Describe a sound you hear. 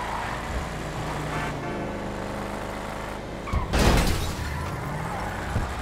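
Car tyres screech on asphalt.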